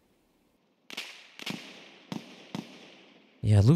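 Rifle shots crack several times, each followed by a short echo.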